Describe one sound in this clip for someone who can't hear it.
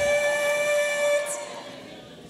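A young woman sings a long held note through a loudspeaker system.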